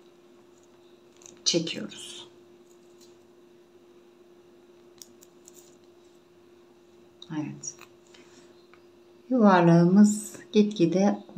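Glass beads click softly against each other.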